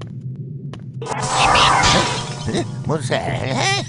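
A magic spell bursts with a loud crackling whoosh.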